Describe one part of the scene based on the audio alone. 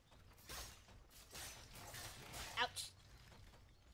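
Blades swish through the air in quick strikes.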